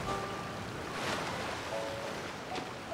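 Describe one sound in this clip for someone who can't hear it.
A burst of magic whooshes and chimes.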